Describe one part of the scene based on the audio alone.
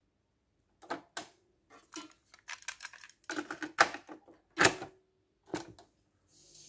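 A cassette tape clatters as it is slid into a player.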